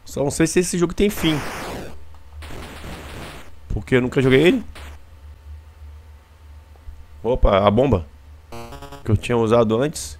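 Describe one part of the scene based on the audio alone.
A retro video game makes short electronic buzzing and zapping sounds.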